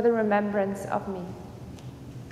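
A woman chants a short line through a microphone.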